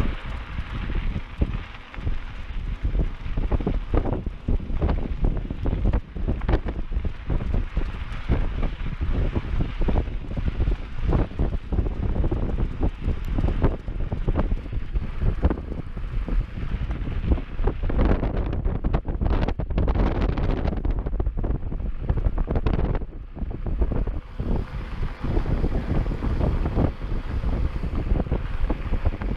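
Mountain bike tyres crunch and rattle over a dirt singletrack.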